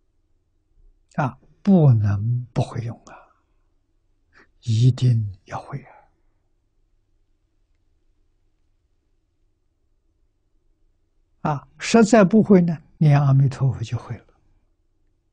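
An elderly man speaks calmly in short phrases with long pauses, close to a microphone.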